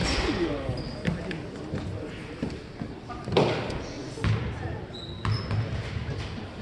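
Voices of players and spectators chatter in a large echoing gym.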